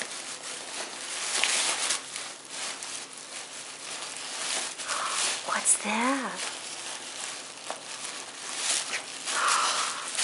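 A dog chews noisily on a toy.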